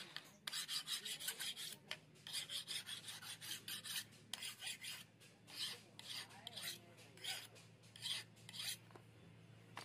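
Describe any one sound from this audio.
A knife blade scrapes rapidly back and forth against wood.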